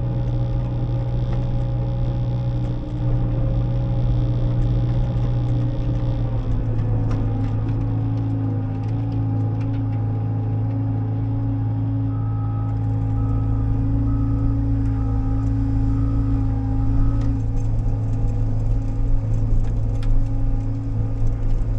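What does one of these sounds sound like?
A diesel engine drones steadily close by.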